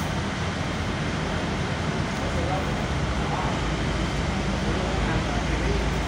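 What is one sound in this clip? A truck engine rumbles as the truck drives slowly past.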